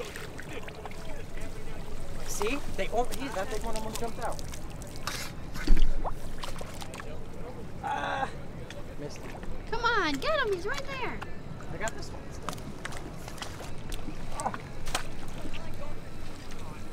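A net splashes through water.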